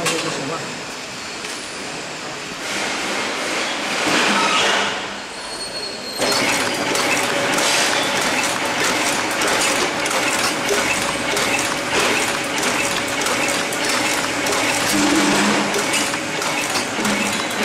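A packing machine rattles and clicks steadily.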